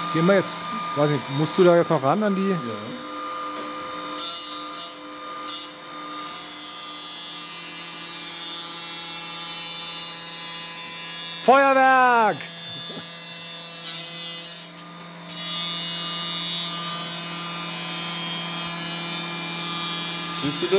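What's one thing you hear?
A machine whirs and hums steadily.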